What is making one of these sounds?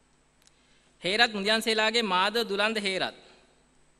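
A woman speaks clearly through a loudspeaker.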